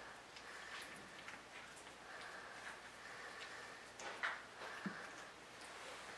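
A puppy licks and sucks wetly at fingers, close by.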